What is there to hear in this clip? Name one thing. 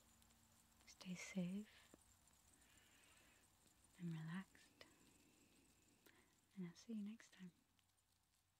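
A young woman speaks quietly in a soft voice close to a microphone.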